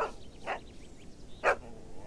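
A dog runs through tall grass.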